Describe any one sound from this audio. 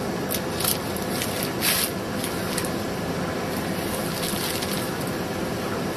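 Hands rustle and press a crisp sheet into a machine.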